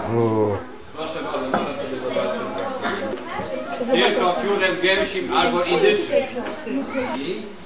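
An elderly man chants in a steady voice close by.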